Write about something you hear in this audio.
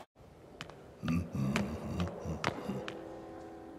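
A man grumbles and mutters to himself.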